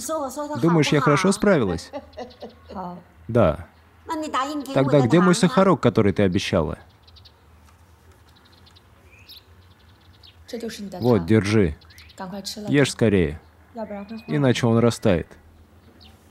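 An elderly woman talks close by with animation.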